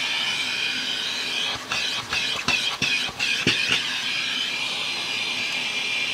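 A vacuum nozzle knocks and scrapes against hard plastic.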